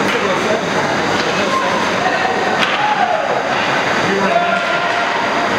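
Hockey skates scrape across ice in a large echoing rink.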